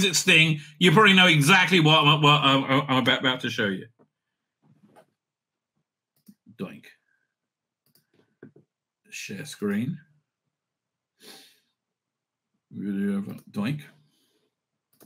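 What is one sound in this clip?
An older man speaks through a microphone with animation, pausing between phrases.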